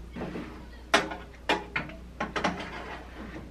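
A metal tray clatters as it slides into an oven.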